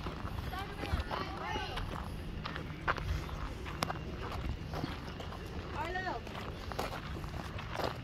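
Children shout and call out nearby outdoors.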